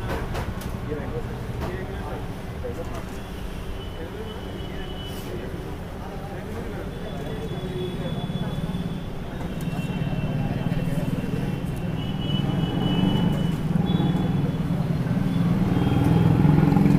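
Food sizzles softly over hot coals.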